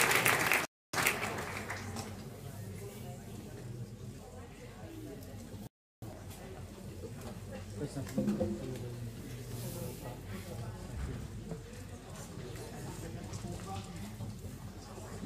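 A brass band plays softly in a large hall.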